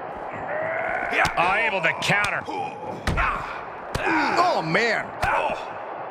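Punches land with sharp smacks.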